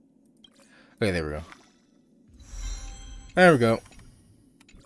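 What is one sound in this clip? A game menu plays a short rising chime as an item is upgraded.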